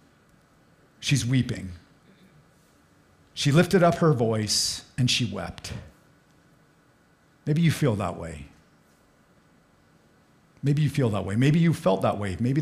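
A middle-aged man speaks calmly into a microphone in bursts, with pauses between.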